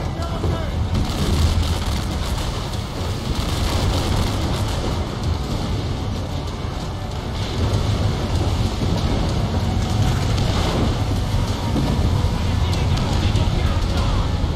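Heavy rain pours down hard.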